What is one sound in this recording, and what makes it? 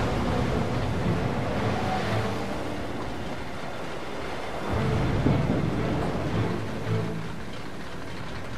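Rough sea waves churn and roar in strong wind.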